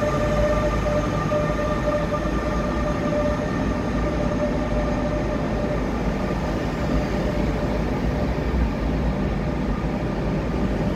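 A train rumbles slowly along a platform in a large echoing hall.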